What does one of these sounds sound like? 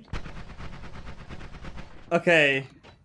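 A laser zaps with a crackling hum.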